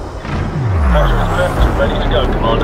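An engine whine drops quickly in pitch.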